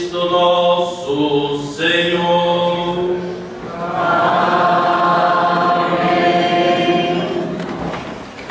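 An elderly man chants through a microphone in a large echoing hall.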